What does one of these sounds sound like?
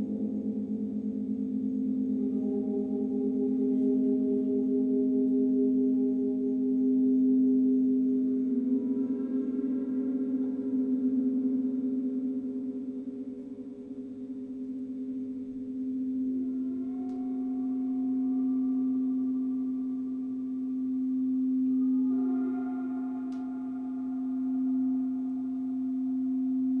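A singing bowl hums steadily as it is rubbed around the rim.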